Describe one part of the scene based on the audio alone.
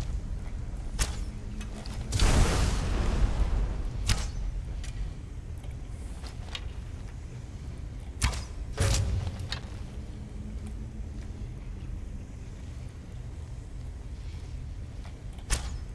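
A bowstring twangs sharply as arrows are loosed, several times.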